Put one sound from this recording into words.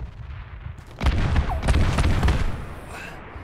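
A loud explosion booms nearby and rumbles.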